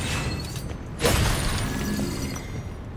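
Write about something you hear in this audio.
A burst of magic explodes with a crack.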